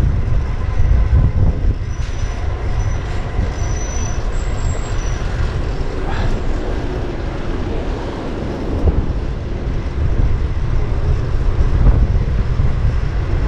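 City traffic hums steadily all around.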